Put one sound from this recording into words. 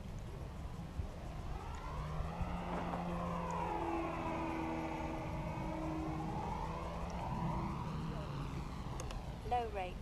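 A model plane's engine buzzes overhead, rises and then fades as it passes.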